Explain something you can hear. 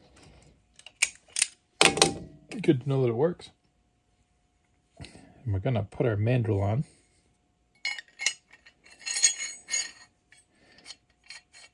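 Metal parts clink and click as they are handled.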